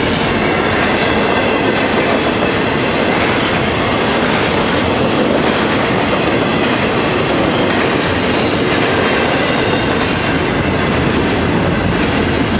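A railroad crossing bell rings steadily.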